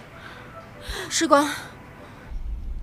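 A middle-aged woman speaks with worry.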